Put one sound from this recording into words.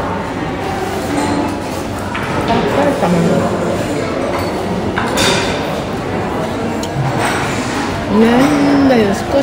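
Voices murmur in a busy room.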